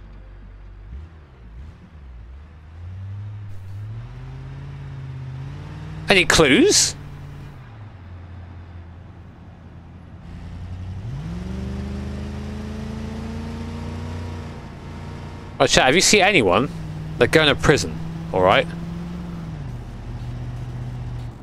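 A car engine revs and roars as it speeds up.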